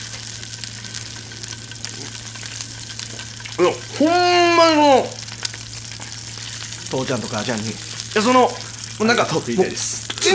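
A steak sizzles and crackles on a hot griddle.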